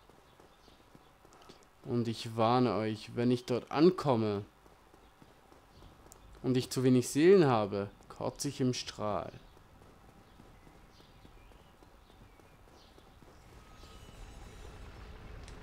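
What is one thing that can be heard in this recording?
Footsteps run quickly across stone.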